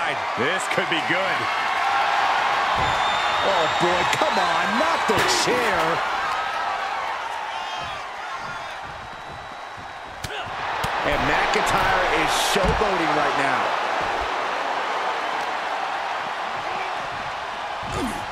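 A large crowd cheers and roars loudly in a big arena.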